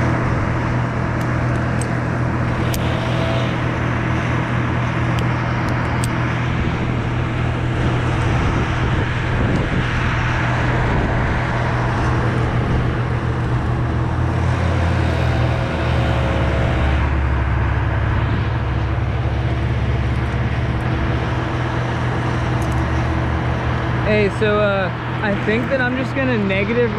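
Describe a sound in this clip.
A chainsaw engine idles steadily close by.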